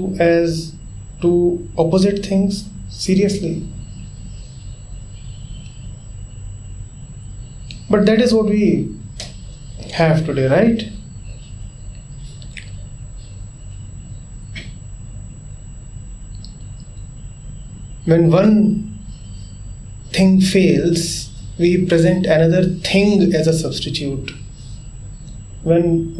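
A man speaks calmly and slowly, close by, with long pauses.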